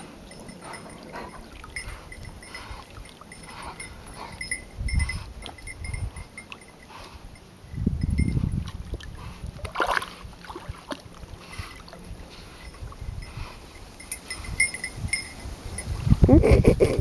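A dog wades and splashes through shallow water.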